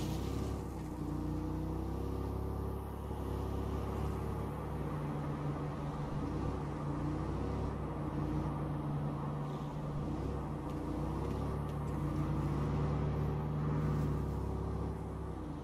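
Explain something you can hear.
A car engine hums steadily, rising and falling slightly in pitch as the car drives.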